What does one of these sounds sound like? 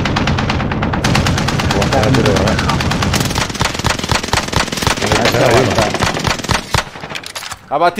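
An automatic rifle fires rapid bursts of shots.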